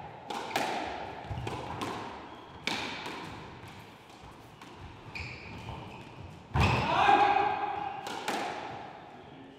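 A squash ball smacks sharply off racquets and walls in an echoing hall.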